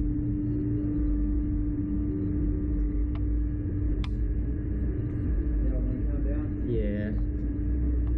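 Wind rushes and roars steadily past, as if outdoors at speed.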